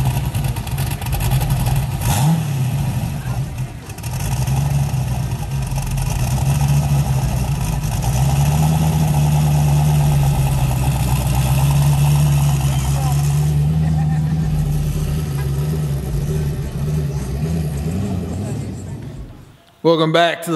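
A loud engine idles with a deep, throbbing rumble and revs now and then.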